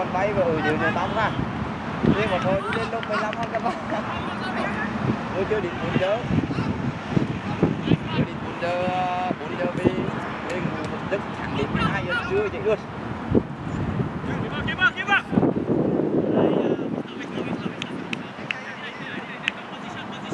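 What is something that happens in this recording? Several young men shout and call out to each other across an open field.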